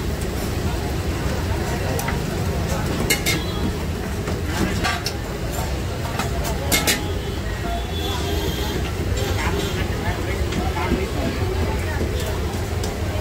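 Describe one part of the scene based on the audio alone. Metal utensils clink and scrape against a hot griddle and steel pots.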